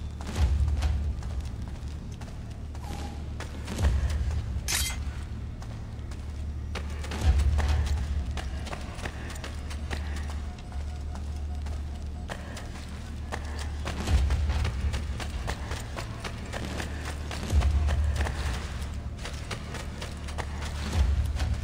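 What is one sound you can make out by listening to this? Footsteps patter quickly across a stone floor.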